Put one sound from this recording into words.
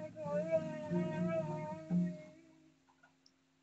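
A young girl sings softly up close.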